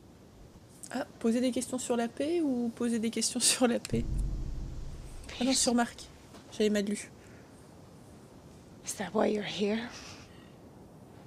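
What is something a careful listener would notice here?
A woman speaks anxiously and questioningly.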